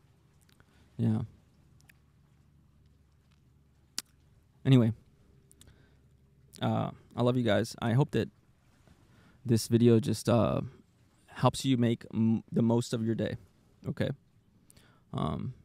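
A young man speaks calmly and close into a handheld microphone, with pauses.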